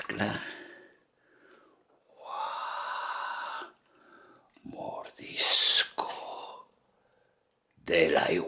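Liquid pours from a shaker over crushed ice in a glass.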